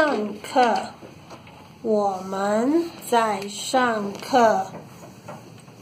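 Young children chant loudly together nearby.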